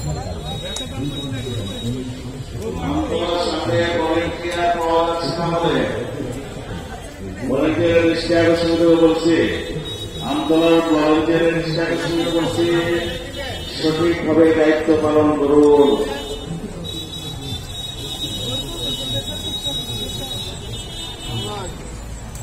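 Men talk in a crowd in the background.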